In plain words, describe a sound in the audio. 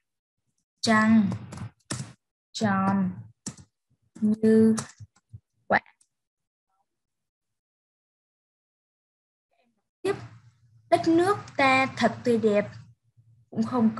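A woman speaks calmly and clearly into a microphone, as if reading out over an online call.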